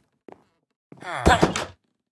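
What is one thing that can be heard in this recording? A villager grunts nearby.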